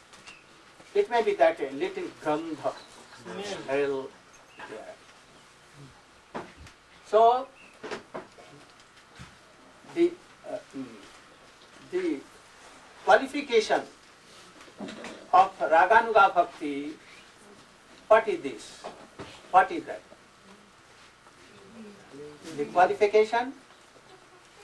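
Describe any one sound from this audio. An elderly man speaks calmly, pausing often.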